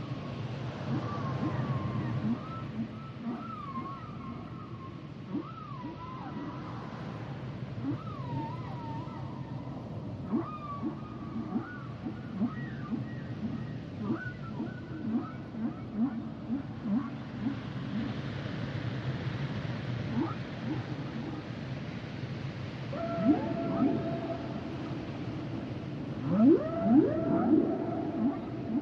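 Dolphins whistle and squeal underwater.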